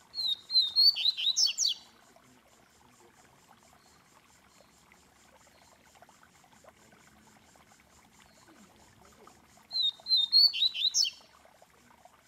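A caged bird sings a short, loud, whistling phrase, then falls quiet.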